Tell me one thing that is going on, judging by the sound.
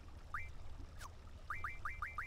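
A soft swooshing confirm tone sounds once.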